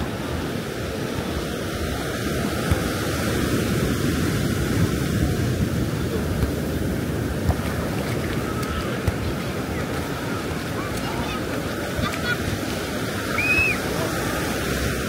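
Waves wash onto the shore steadily.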